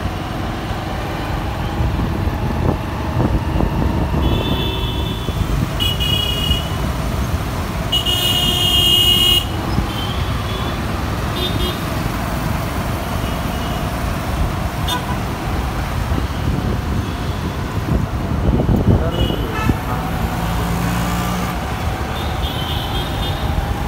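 Motorbike engines buzz nearby.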